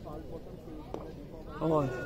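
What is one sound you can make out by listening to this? A cricket bat hits a ball with a sharp knock.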